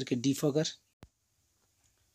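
A switch clicks once.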